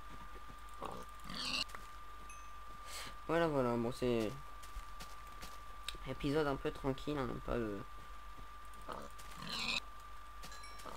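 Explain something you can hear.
A pig squeals in pain when struck.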